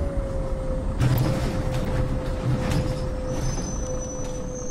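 Bus doors hiss and clatter open.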